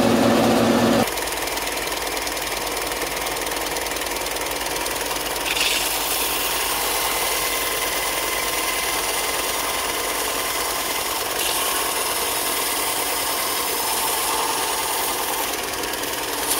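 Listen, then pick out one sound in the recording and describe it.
A belt sander runs with a steady whirring hum.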